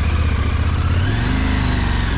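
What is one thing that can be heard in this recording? A motorcycle engine revs up briefly.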